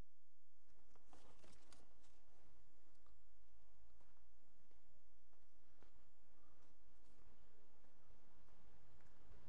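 A cloth rubs softly over a car's bodywork.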